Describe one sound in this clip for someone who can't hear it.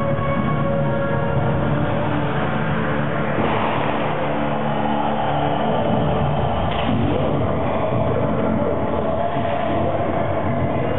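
A large crowd cheers and screams in an echoing arena.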